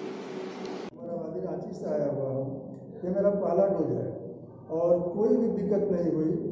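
An elderly man speaks calmly into microphones, close by.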